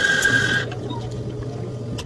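Milk pours and splashes over ice in a plastic cup.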